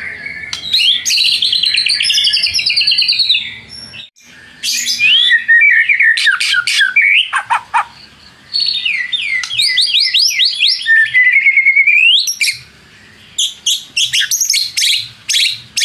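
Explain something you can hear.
A songbird sings loud, rapid, whistling phrases close by.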